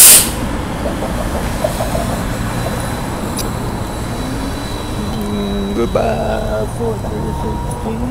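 A bus rumbles past on the street.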